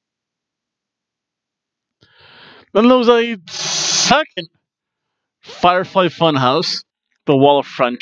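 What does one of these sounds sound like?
A man laughs into a headset microphone.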